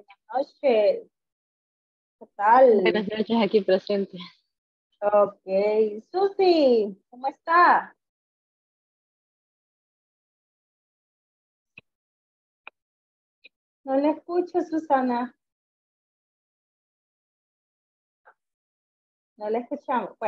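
A young woman speaks with animation over an online call, in bursts with pauses.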